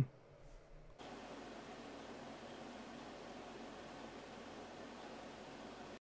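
Server fans hum steadily.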